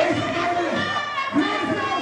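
A man shouts into a microphone through loudspeakers.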